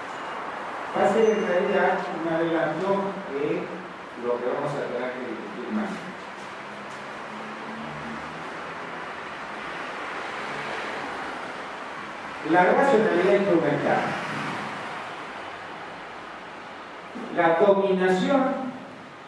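An elderly man speaks with animation through a microphone and loudspeakers, in a room with some echo.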